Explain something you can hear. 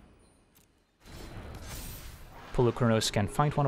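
A magical whoosh and shimmer sound.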